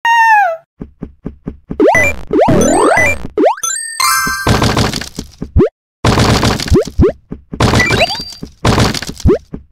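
Quick electronic blips and boings play as a game character jumps and collects items.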